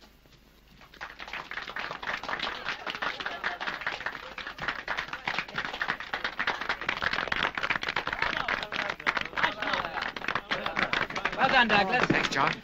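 A crowd applauds and cheers steadily.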